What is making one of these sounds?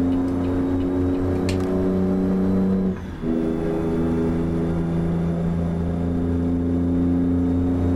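A truck's diesel engine drones steadily, briefly dropping off as the gears shift.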